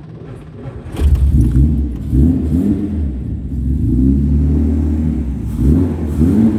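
A car engine idles with a deep, uneven rumble.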